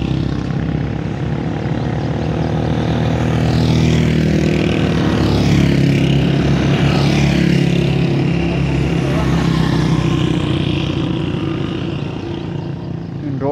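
Motorcycle engines rumble as motorcycles ride past.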